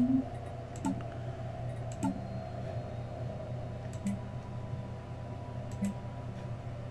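Short soft chimes sound as game menus open.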